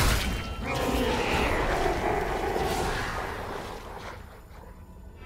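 A large magical blast roars and crackles, then fades away.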